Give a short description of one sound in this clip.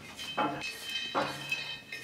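Corn kernels crackle and pop in a hot pan.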